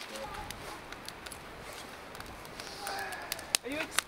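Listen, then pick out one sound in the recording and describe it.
A log thuds onto a fire.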